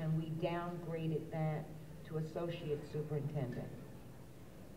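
A woman reads out loud through a microphone in a large hall.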